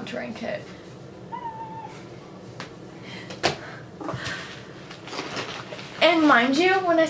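Plastic and cardboard packaging rustles and clicks.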